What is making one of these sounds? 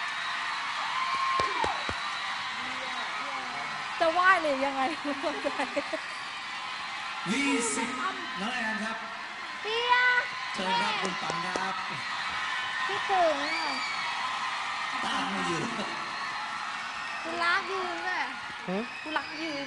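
A young woman laughs with delight close by.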